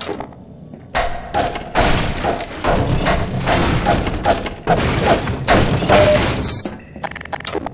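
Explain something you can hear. A crowbar smashes wooden crates, the wood cracking and splintering.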